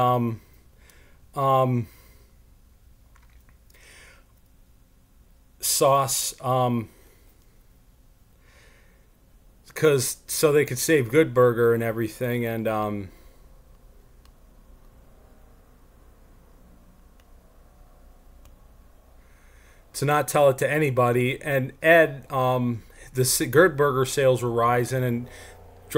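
A young man talks calmly and close into a microphone, with pauses.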